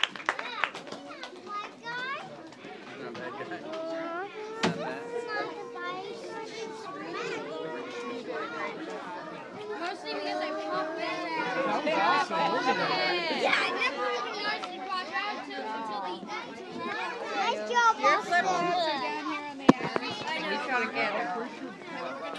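Young children chatter and shout excitedly close by in an echoing hall.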